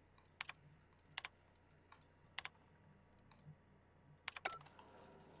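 Soft electronic clicks sound as a terminal's menu options are chosen.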